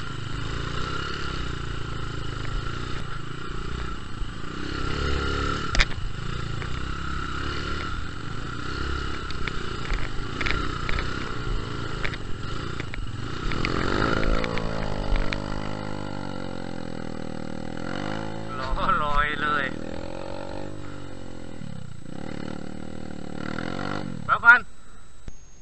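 A dirt bike engine runs close by, rumbling and revving.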